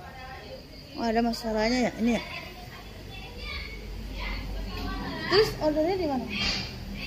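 A woman speaks in a lively voice nearby.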